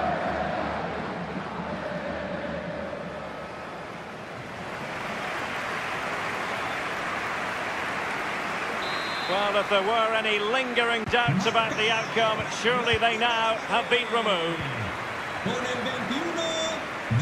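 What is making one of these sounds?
A large stadium crowd cheers and roars steadily.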